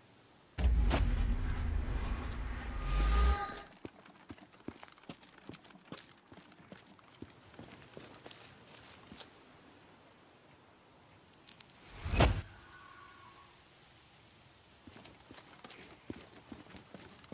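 Footsteps crunch on gravel and pavement.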